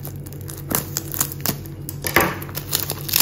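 A knife slits plastic film on a box.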